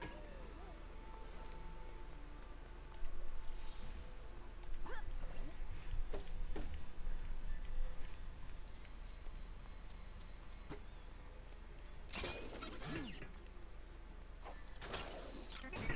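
Small bright chimes ring as tiny coins are picked up.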